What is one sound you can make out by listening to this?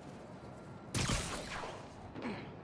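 A web line shoots out with a sharp whoosh.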